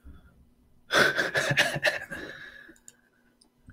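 A young man laughs close to a microphone.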